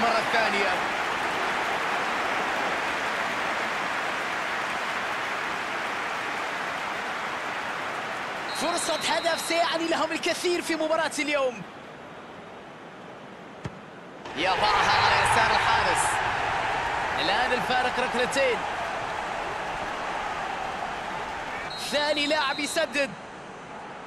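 A stadium crowd roars and cheers steadily.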